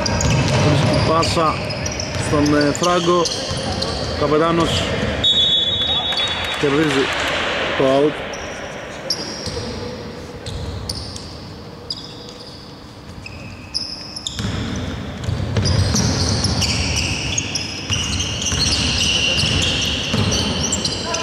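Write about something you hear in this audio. Sneakers squeak sharply on a hard court, echoing in a large hall.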